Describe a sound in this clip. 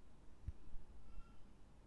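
A hand squishes soft dough in a bowl.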